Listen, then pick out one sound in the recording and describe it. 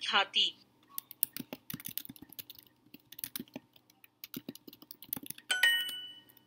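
Keyboard keys click rapidly in a quick typing patter.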